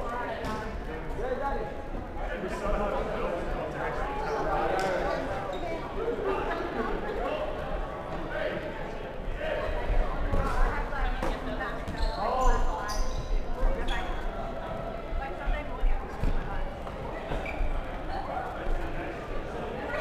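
Players' voices call out and echo in a large indoor hall.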